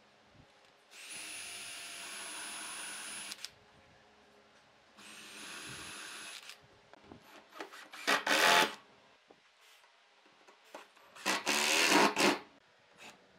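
A cordless drill whirs in short bursts, driving screws into wood.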